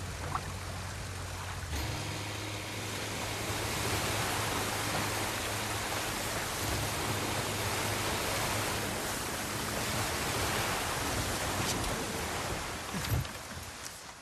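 A small boat motor hums steadily.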